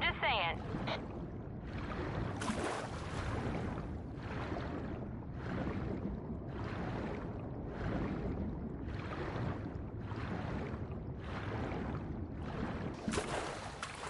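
Water sloshes and splashes in rhythmic strokes as someone swims.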